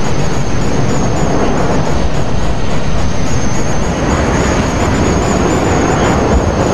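A jet engine roars loudly and steadily.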